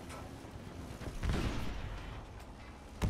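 An explosion bursts nearby with a deep roar.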